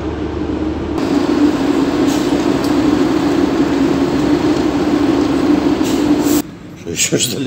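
A forklift engine hums steadily nearby.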